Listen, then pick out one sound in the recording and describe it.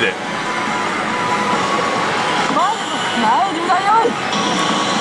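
A slot machine plays busy electronic music and game sounds.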